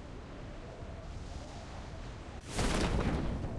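Wind rushes steadily past a falling skydiver.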